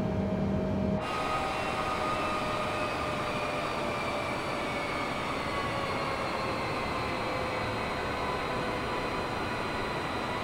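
Jet engines roar with a high whine, heard from outside an airliner.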